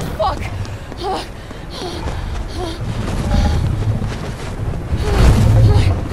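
A young woman pants while running.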